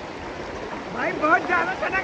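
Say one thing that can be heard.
A man splashes through water.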